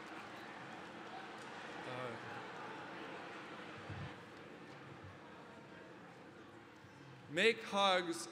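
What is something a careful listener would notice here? A large crowd murmurs softly in a big hall.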